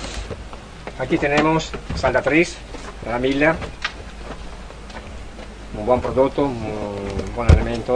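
A middle-aged man speaks calmly and explains, close by.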